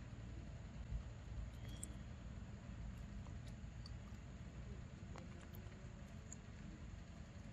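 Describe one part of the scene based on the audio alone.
A macaque chews a banana.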